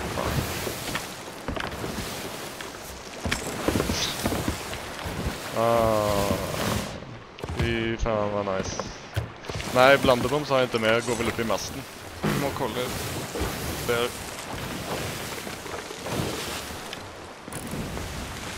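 Rough sea waves surge and crash.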